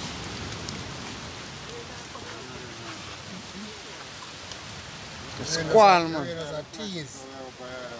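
A knife cuts through a tomato.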